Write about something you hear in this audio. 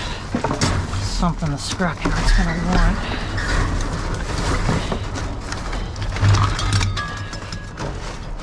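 Cardboard and plastic tubing rustle and crinkle as they are pushed about.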